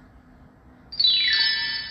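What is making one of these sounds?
A rising chime sweeps up quickly.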